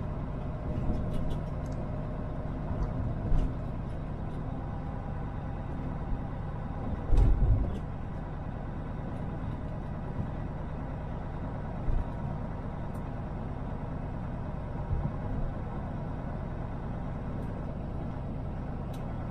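A vehicle's engine rumbles steadily.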